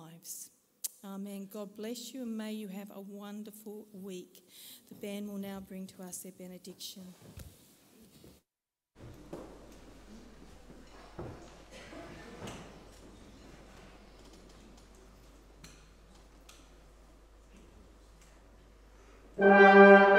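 A brass band plays a slow hymn in an echoing hall.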